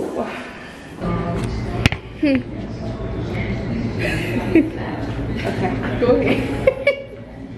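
Several women laugh and chatter.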